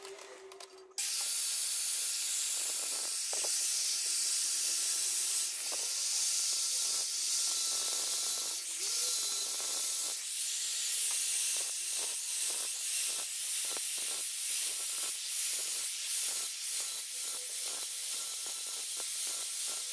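An angle grinder whines loudly as it cuts into stone.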